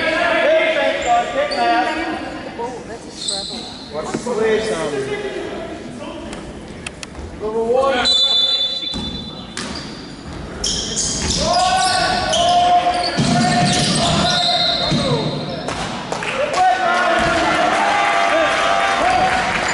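Young players shout to each other across an echoing hall.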